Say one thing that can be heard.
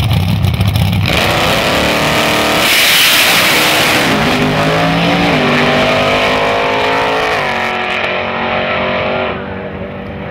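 A drag racing engine roars at full throttle and speeds away into the distance.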